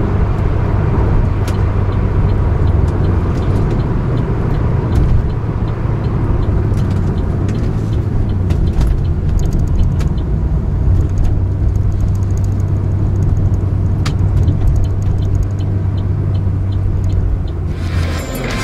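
Tyres roll on the road beneath a moving car.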